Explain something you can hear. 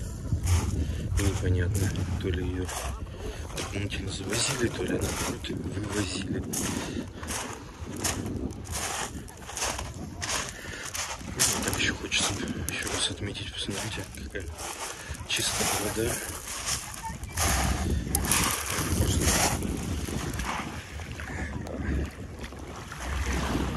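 Footsteps crunch on pebbles.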